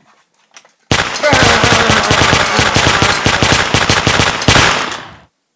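A toy gun fires with a loud crackling blast.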